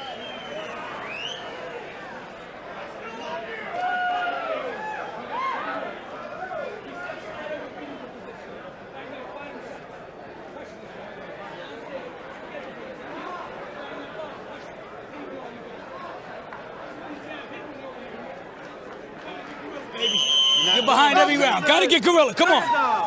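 A large crowd murmurs and shouts in an echoing arena.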